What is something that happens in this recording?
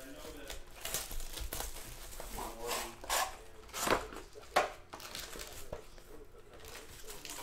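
Plastic wrap crinkles as hands handle a box.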